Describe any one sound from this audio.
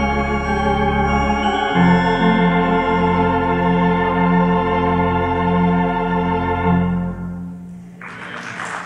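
A pipe organ plays a loud, sustained chord that fades away.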